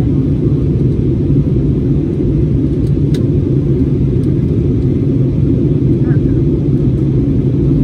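An airplane cabin hums with a steady, low engine drone.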